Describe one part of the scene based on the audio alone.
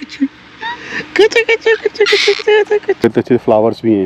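A baby giggles and squeals close by.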